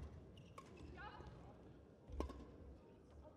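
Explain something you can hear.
A racket strikes a shuttlecock with a light pop.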